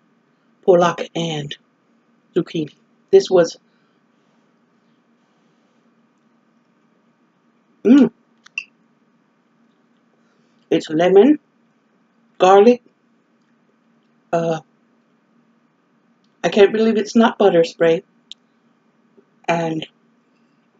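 An older woman speaks calmly close to a microphone, in short phrases with pauses.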